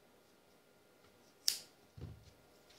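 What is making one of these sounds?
Scissors snip through a cord.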